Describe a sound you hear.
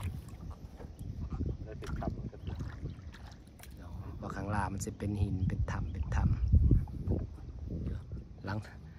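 Water laps gently against a wooden boat.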